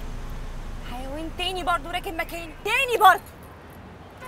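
A woman cries out in a high, strained voice close by.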